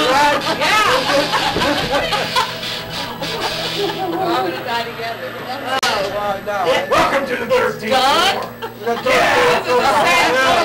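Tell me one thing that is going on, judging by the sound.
A middle-aged woman laughs loudly and excitedly.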